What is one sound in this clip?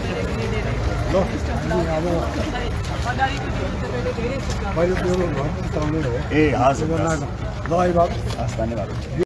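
Men greet each other loudly with animated voices.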